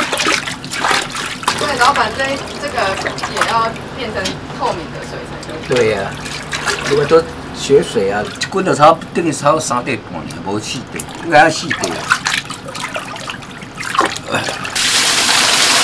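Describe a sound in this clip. Hands slosh and splash through water in a pot.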